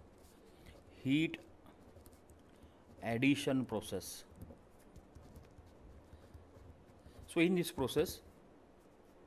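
A man speaks calmly into a close microphone, in short phrases.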